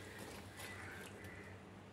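A metal spoon scrapes and stirs food in a pan.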